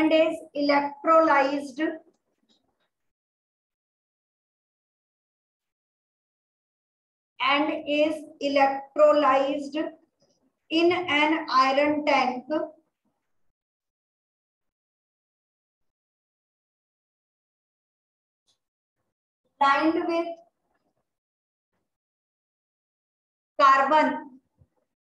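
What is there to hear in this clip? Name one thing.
A woman speaks calmly in short bursts, close by.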